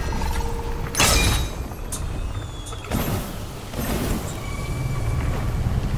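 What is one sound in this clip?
A staff whooshes through the air in quick swings.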